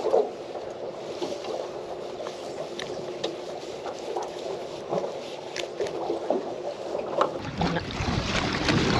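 Water laps against the side of a boat.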